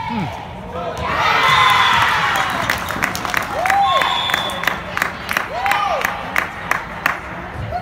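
A crowd of spectators cheers and claps loudly.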